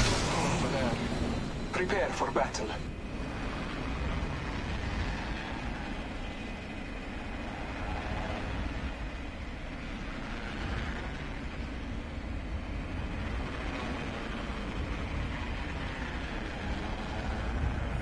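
Wind rushes loudly past during a fast skydive.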